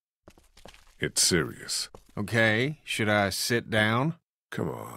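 A second man answers with animation.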